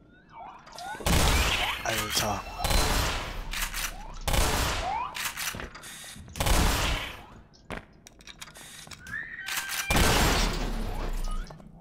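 Shotgun blasts boom loudly, one after another.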